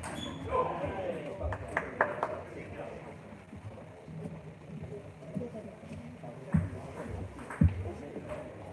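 Men talk casually nearby in a large echoing hall.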